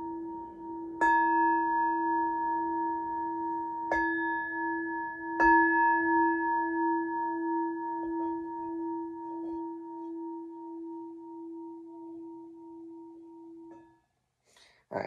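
A metal singing bowl is struck several times and rings with a long, fading tone.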